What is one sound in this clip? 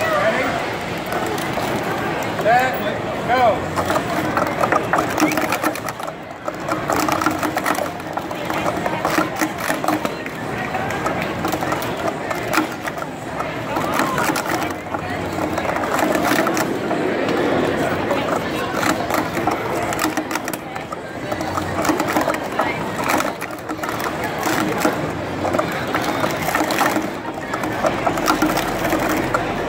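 Plastic cups clatter rapidly as they are stacked and unstacked.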